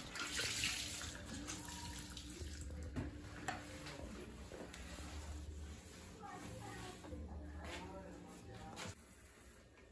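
A sponge scrubs a sink surface.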